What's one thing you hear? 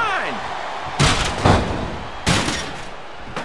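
A metal ladder clangs loudly as it strikes a wrestler.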